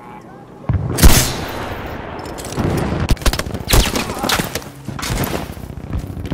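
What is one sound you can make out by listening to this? Explosions boom loudly in quick succession.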